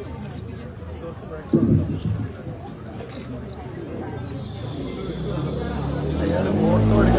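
Several men and women talk and murmur close by.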